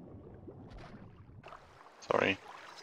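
Muffled underwater bubbling and rumbling.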